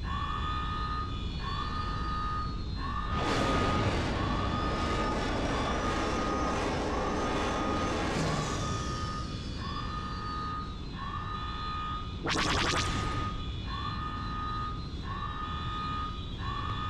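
Laser cannons fire in repeated bursts.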